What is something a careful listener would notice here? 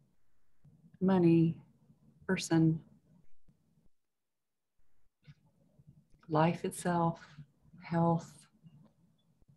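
A woman speaks over an online call with animation.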